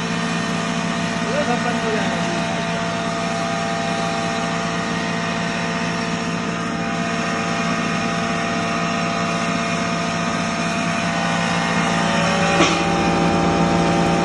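An electric grain mill motor hums loudly and steadily.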